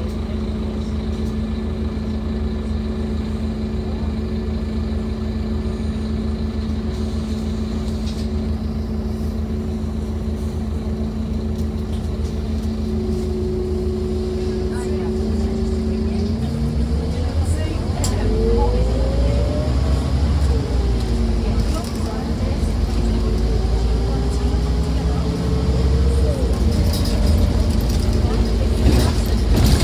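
A bus engine hums steadily while the bus drives along.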